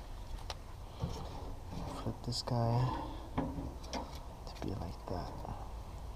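Metal tongs clink against a grill grate.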